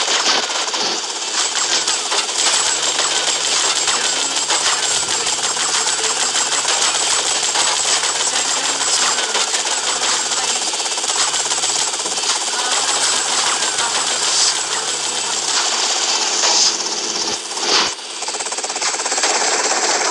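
A helicopter's rotor chops and whirs.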